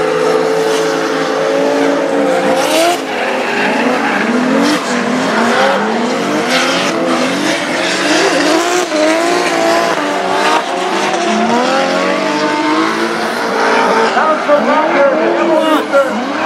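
Racing car engines roar and rev up and down loudly.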